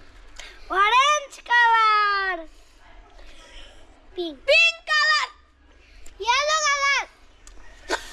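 Young boys speak with animation close by.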